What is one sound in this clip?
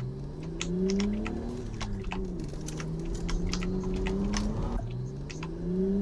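A small car engine hums steadily, its pitch rising and dipping as it speeds up and slows down.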